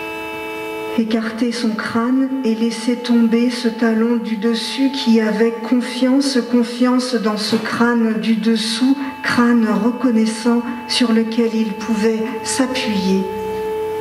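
A woman speaks with animation into a microphone, heard over loudspeakers in an echoing room.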